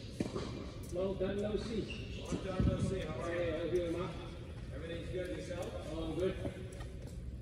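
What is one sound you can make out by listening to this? A man talks casually nearby in a large echoing hall.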